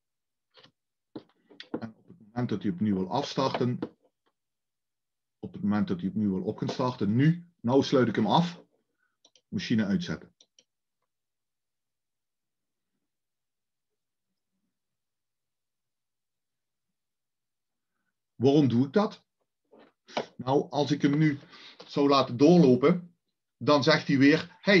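An older man talks calmly into a close microphone, with pauses.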